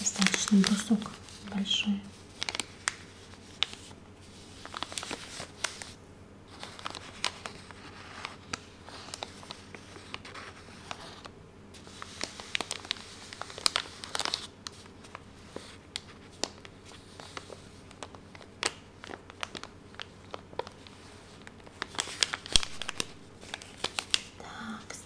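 Paper wrapping crinkles and rustles close up as fingers handle it.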